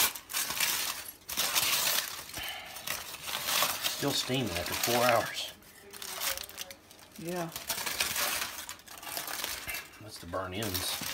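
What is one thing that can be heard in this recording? Aluminium foil crinkles and rustles as hands unwrap it.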